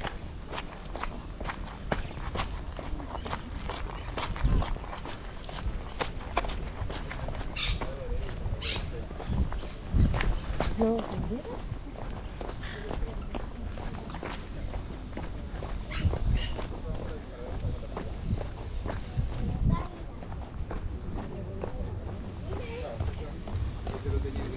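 Footsteps crunch and tap steadily on gravel and cobblestones.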